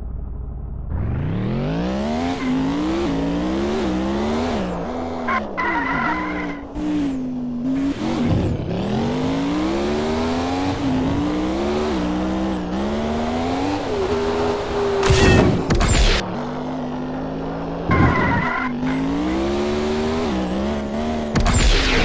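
A car engine revs up and roars, rising and falling in pitch as gears shift.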